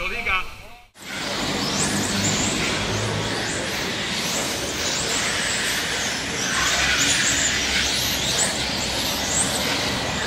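Small electric model cars whine as they race around a track.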